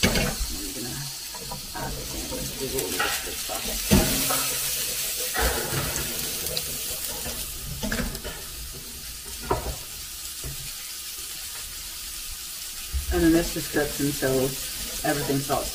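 Chopped vegetables tumble into a hot pan and sizzle loudly.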